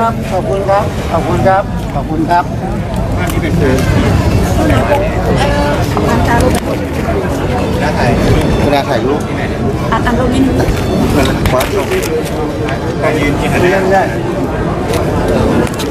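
Several people talk at once in a crowd nearby.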